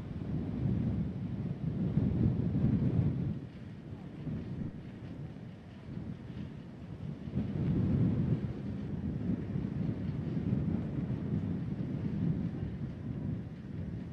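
A bus engine rumbles low and steady outdoors.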